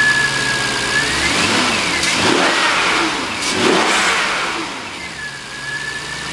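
A car engine revs up sharply and then settles back to idle.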